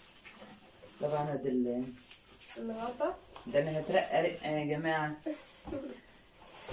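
A middle-aged woman talks animatedly close by.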